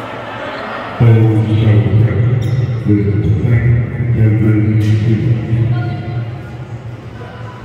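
A man speaks loudly and close by, his voice echoing in a large hall.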